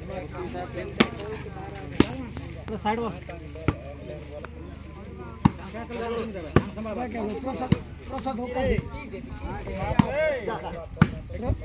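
A volleyball is struck sharply by hands, again and again.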